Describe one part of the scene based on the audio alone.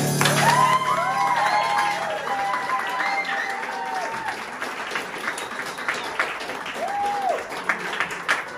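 A keyboard plays a bright melody.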